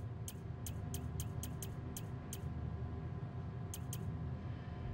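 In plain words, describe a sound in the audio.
Soft electronic clicks tick in quick succession.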